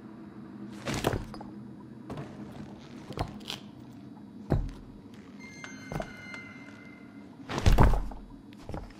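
Cardboard boxes thump and knock as they are pushed aside.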